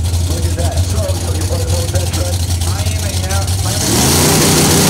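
Two drag racing engines idle with a deep, loping rumble.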